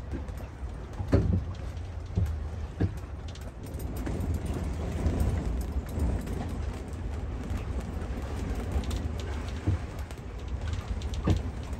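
Strong wind buffets and roars against the microphone.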